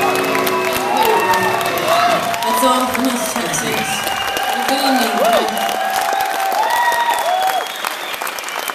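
A concert crowd cheers and whistles.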